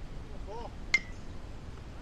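A bat cracks against a baseball in the distance.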